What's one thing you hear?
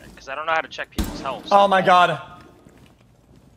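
A rifle fires a shot.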